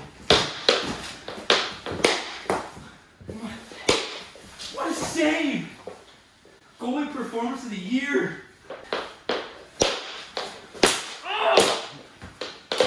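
Plastic hockey sticks clack and slap against a hard floor.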